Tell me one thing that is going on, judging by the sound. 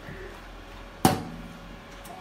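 A plastic lid shuts with a sharp clack.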